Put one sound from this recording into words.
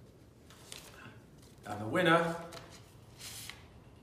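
Paper rustles as an envelope is opened.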